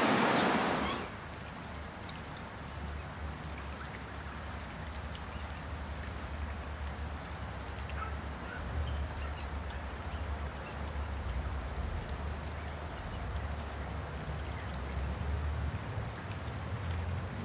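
Young swans dabble and splash softly in shallow water.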